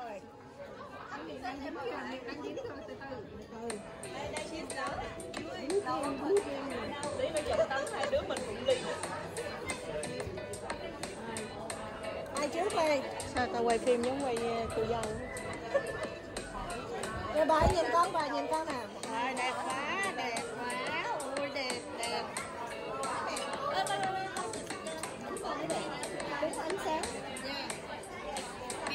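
Several women chat and laugh together nearby.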